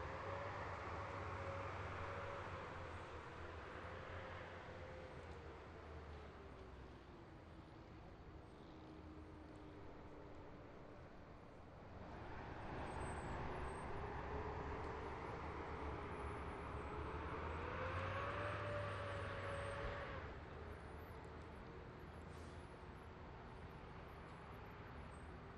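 Armoured vehicle engines rumble as the vehicles drive slowly past.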